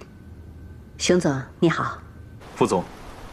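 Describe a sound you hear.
A woman speaks calmly into a phone.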